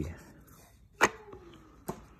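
A card taps down on a wooden table.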